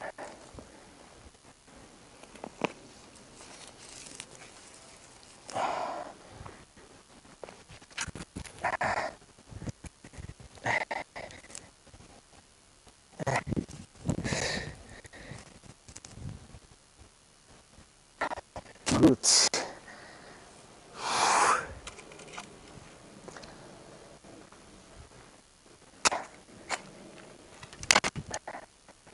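A hoe scrapes and chops into dry soil.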